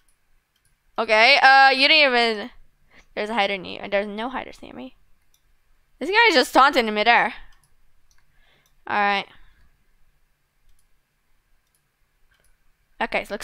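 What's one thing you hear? A young girl talks with animation into a close microphone, in short bursts.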